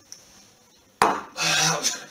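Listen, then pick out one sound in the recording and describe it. A mug is set down on a hard counter with a knock.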